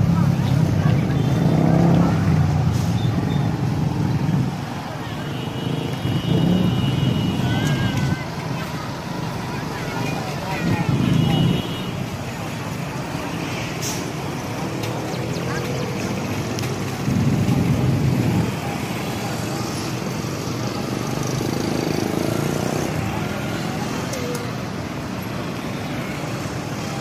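Motorcycle engines rumble past close by.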